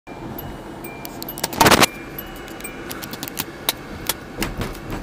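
A phone knocks and rattles as it is handled close up.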